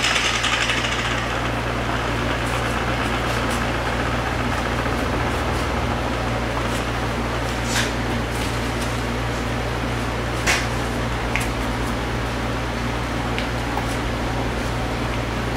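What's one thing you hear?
A cloth rubs softly against a smooth surface.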